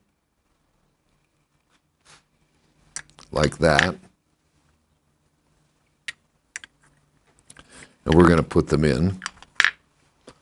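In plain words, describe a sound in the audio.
Metal parts click and clink softly as they are handled.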